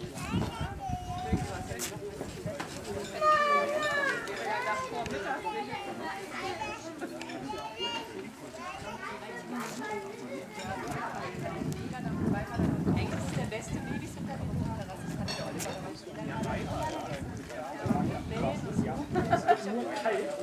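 Several men and women talk together outdoors.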